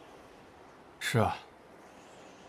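A young man answers briefly in a low voice.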